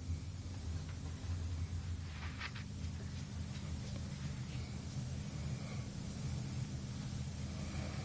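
A tortoise's claws scrape across a rug.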